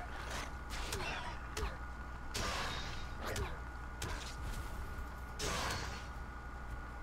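Weapon blows strike a creature in quick bursts.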